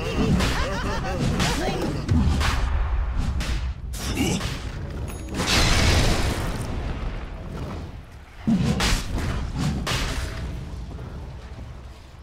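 Magic spells burst and weapons strike in a game battle.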